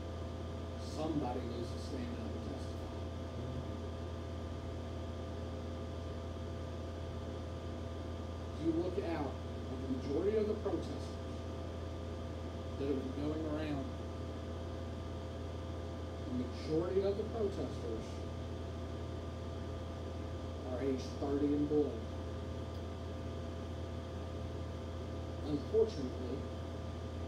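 A man speaks slowly into a microphone, with long pauses, in an echoing room.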